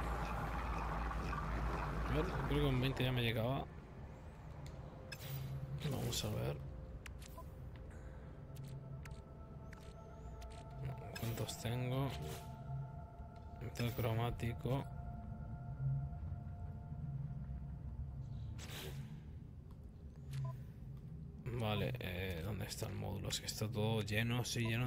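Soft electronic clicks and beeps sound as game menus are browsed.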